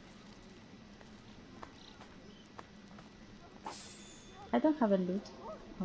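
A fire crackles softly nearby.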